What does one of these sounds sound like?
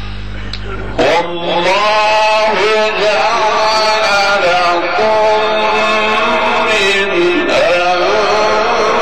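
A man chants melodically into a microphone, heard through a loudspeaker.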